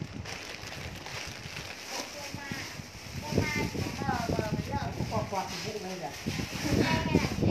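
Fabric rustles as clothes are handled.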